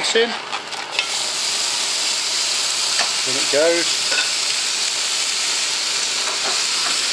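Minced meat sizzles loudly in a hot pan.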